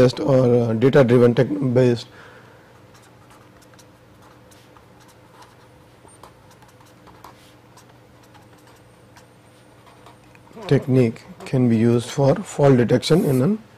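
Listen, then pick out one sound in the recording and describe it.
A felt-tip marker squeaks and scratches faintly across paper.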